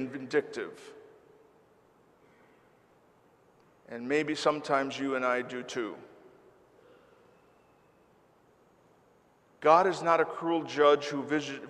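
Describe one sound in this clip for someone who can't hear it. An elderly man chants slowly into a microphone, with pauses between phrases.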